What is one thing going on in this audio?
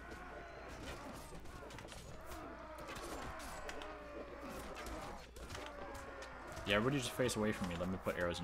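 Horse hooves pound on grass in a battle.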